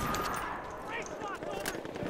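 A gun's magazine clicks as it is reloaded.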